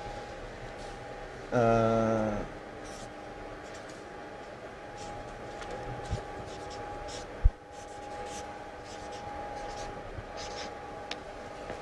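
A marker squeaks on paper.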